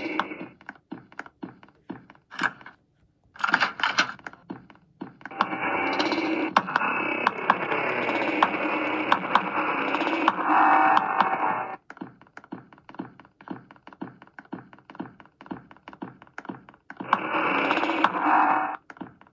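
Fingers tap and swipe on a tablet's glass.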